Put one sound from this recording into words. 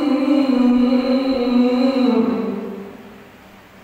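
A man chants a long held note into a microphone in a large echoing hall.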